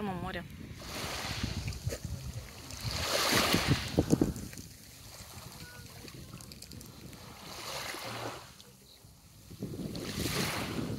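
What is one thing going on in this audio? Small waves lap softly on a pebble shore.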